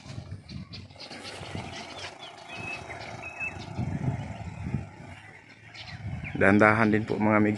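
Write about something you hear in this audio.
An off-road vehicle's engine rumbles along a dirt track some distance away.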